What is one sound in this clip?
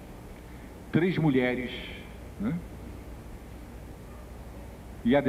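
An older man speaks slowly into a microphone, heard through a loudspeaker in a large room.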